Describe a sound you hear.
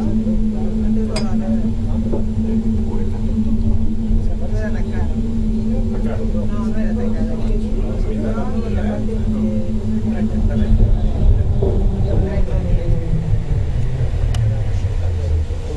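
A small train hums and rumbles steadily along its track.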